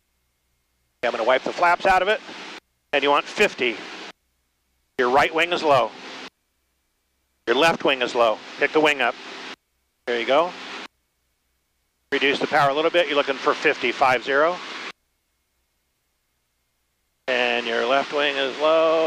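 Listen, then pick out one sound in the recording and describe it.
A man speaks calmly through a headset intercom.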